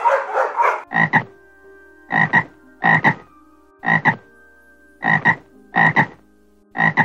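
A frog croaks in short, regular bursts.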